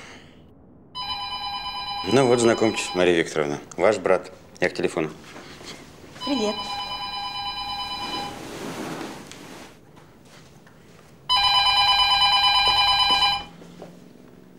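A phone rings with a loud electronic tone.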